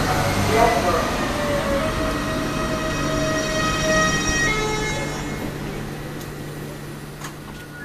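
A train rumbles past close by with a high squealing hum.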